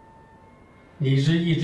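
A man begins to speak calmly.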